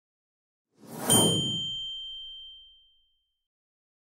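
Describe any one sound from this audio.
A small bell dings once.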